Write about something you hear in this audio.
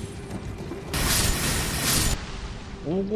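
A magic spell bursts with a loud whoosh.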